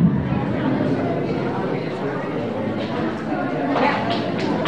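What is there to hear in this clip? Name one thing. A young woman speaks close by.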